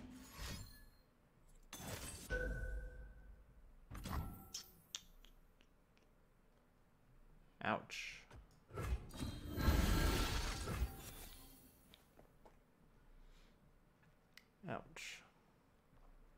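A card game plays bright chimes and whooshes.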